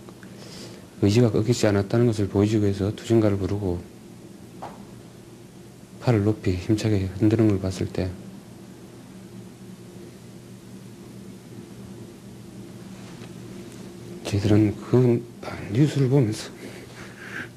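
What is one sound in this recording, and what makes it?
A man speaks calmly and haltingly, close to a microphone.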